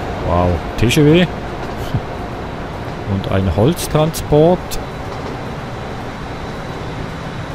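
A train rumbles slowly along the tracks.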